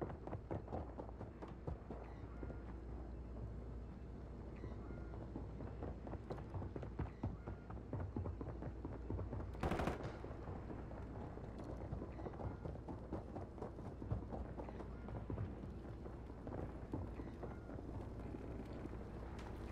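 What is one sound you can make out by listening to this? Footsteps thud softly on a hard floor indoors.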